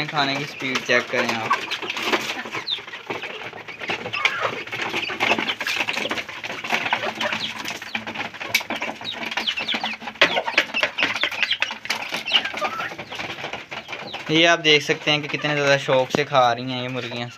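Chickens peck at a hard floor.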